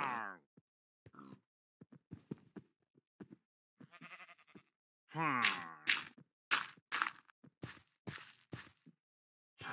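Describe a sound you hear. Blocks are placed with soft thuds.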